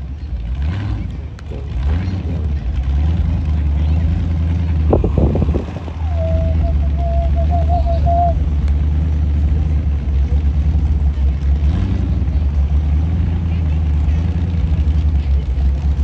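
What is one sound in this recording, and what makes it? A drag racing car's engine rumbles deeply from across the track.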